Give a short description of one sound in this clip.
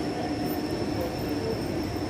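Footsteps pass by on a walkway.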